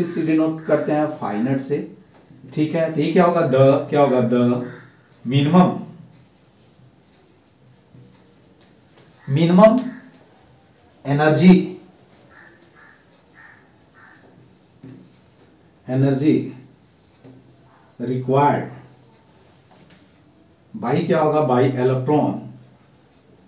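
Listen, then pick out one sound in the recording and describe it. A man speaks calmly in bursts, explaining.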